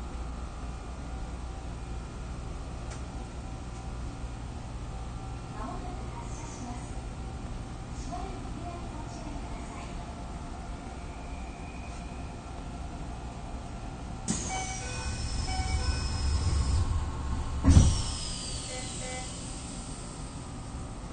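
A train's motor hums low and steady while it stands still.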